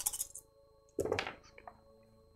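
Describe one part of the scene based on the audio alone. Dice clatter and roll into a tray.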